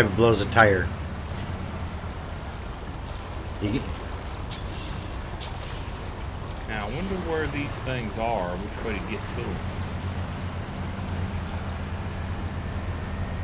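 A heavy truck engine drones steadily at low speed.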